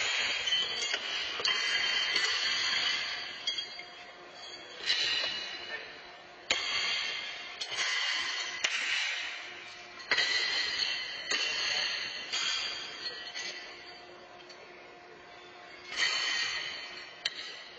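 Horseshoes clang against steel stakes, echoing through a large arena.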